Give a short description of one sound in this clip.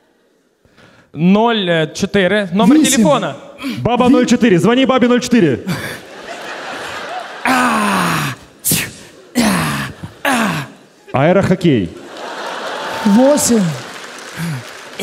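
A young man speaks and shouts with animation through a headset microphone.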